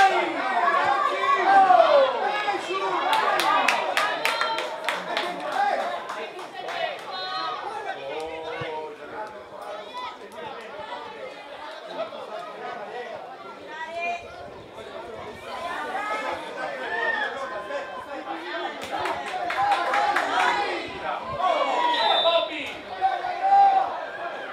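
Young players shout to each other across an open field.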